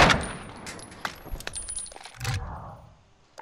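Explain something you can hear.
Gunshots bang sharply in quick succession.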